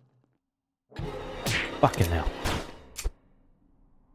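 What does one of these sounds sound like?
A harsh slashing sound effect with a loud stab and burst plays.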